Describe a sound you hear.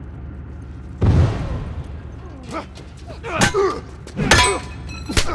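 Heavy blows thud and scuffle in a close fight.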